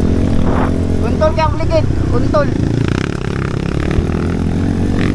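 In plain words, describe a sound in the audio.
A second motorcycle engine roars past close by.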